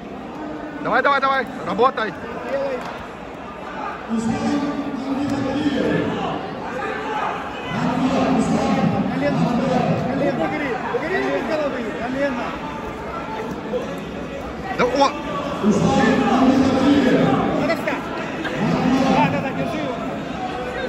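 Two wrestlers scuffle and thump on a padded mat.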